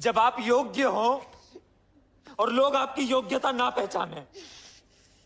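A man speaks loudly and forcefully nearby.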